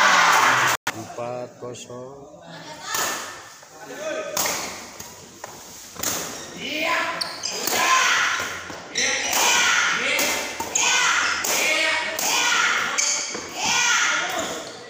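Young men shout and cheer loudly in an echoing hall.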